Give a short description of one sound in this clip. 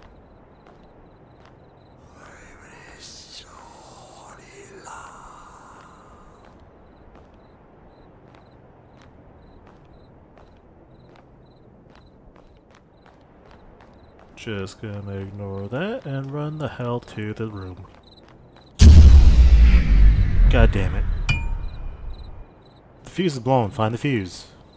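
Footsteps crunch slowly over stone and dry leaves.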